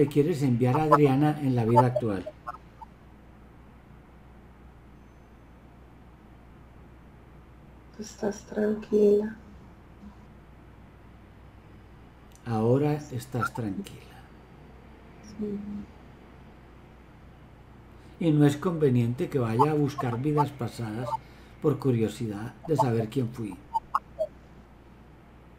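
A middle-aged man speaks with animation over an online call, in bursts with pauses.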